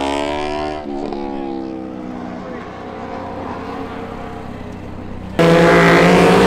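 Motorcycle engines idle and rumble nearby.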